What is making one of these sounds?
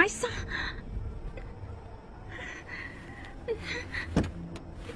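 A young woman sobs softly close by.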